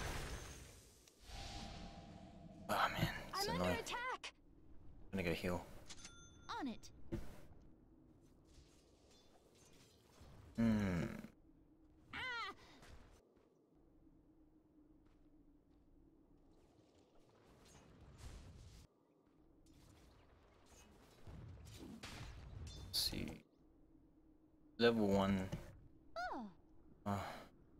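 A young man talks in short bursts close to a microphone.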